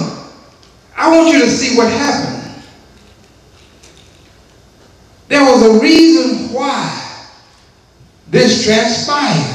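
A man preaches forcefully into a microphone in a reverberant hall, in loud bursts with pauses.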